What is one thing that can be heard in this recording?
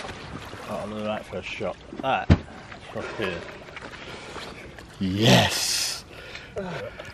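Water splashes as a large fish thrashes.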